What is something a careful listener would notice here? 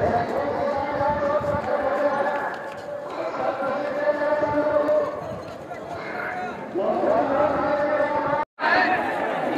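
A large crowd of men chants together outdoors.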